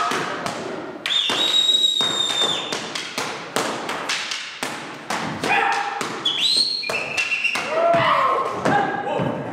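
Dancers stamp their feet on the floor.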